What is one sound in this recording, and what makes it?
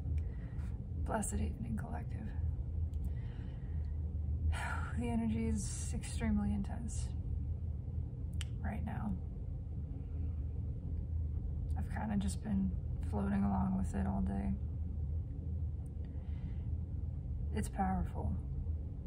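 A young adult speaks calmly and gently, close to the microphone, with pauses.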